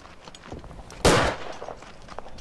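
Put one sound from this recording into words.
A gunshot cracks loudly once.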